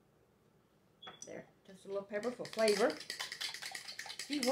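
A spoon scrapes and stirs in a plastic bowl.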